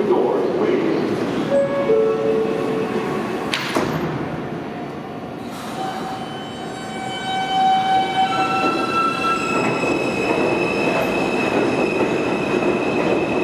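A subway train rumbles along the platform, its wheels screeching and squealing.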